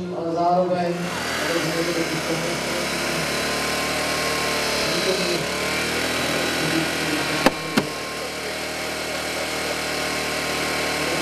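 A hydraulic rescue tool whirs steadily.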